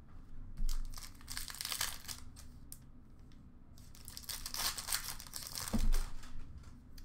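Trading cards rustle and slide as hands sort through them in a plastic bin.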